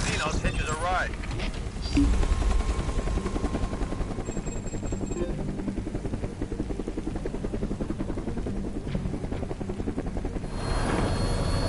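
A helicopter's rotor thumps loudly and steadily.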